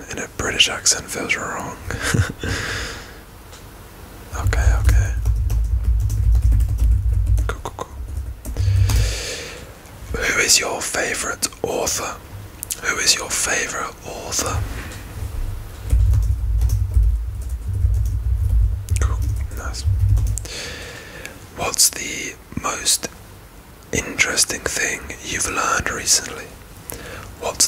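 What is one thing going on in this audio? A young man whispers close to a microphone.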